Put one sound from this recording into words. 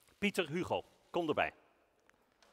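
A man speaks loudly with animation through a loudspeaker in a large hall.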